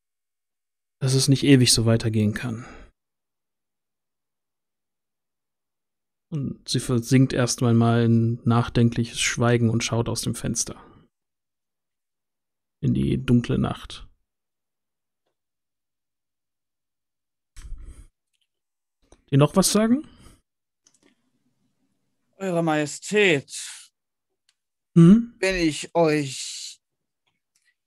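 A man speaks with animation through a headset microphone over an online call, in bursts with pauses.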